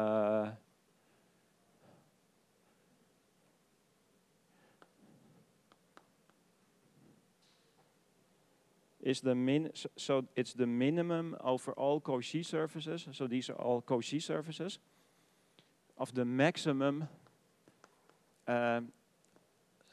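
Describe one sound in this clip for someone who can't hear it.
A man speaks calmly through a microphone, in pauses.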